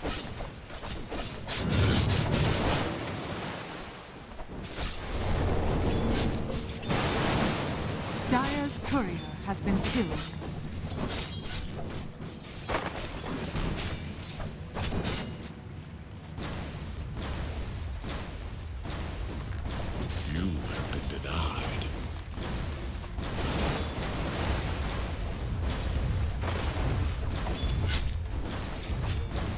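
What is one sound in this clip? Fantasy battle sound effects of spells and weapon blows crackle and clash.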